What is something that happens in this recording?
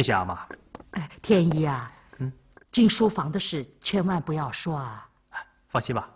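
A middle-aged woman speaks earnestly, close by.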